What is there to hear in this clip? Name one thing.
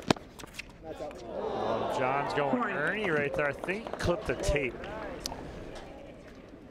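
A crowd cheers and applauds after the point.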